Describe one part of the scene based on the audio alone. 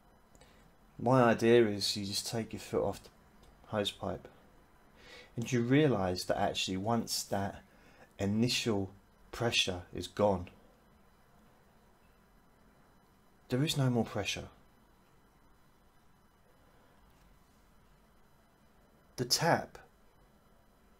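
A middle-aged man talks calmly and close to the microphone, in short bursts with pauses.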